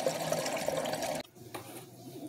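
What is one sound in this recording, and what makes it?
Water pours from a tap into a plastic bottle.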